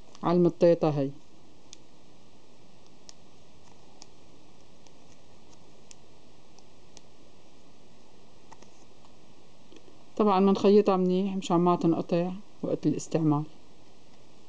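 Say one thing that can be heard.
Hands rustle and fold a piece of felt.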